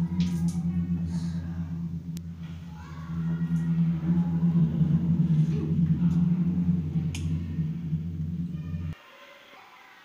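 Water runs steadily from a tap.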